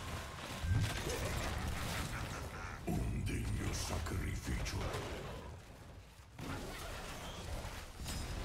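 Magic spells crackle and blast during a fight.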